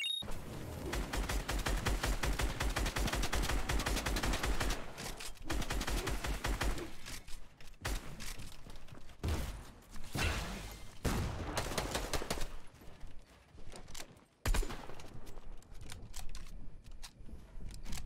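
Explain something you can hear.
Game building pieces snap and clatter in quick bursts.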